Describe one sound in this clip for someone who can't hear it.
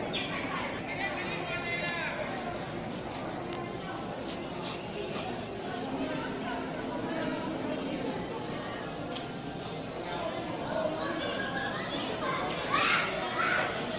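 Men and women talk nearby in a small crowd outdoors.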